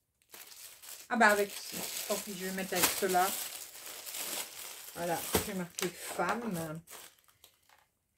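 Plastic sleeves rustle and crinkle in hands.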